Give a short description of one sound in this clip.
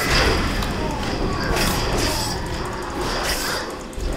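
Blades clash and magic bursts crackle in a fight.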